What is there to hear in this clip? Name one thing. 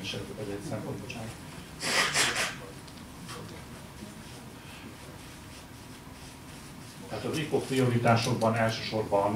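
A man speaks calmly into a microphone in an echoing room, with pauses.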